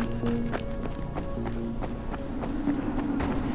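Footsteps thud quickly up stone stairs.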